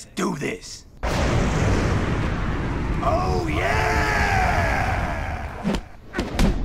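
A man shouts triumphantly.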